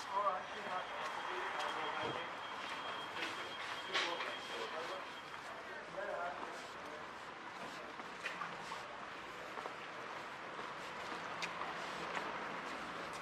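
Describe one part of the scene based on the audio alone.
Town street noise hums steadily outdoors.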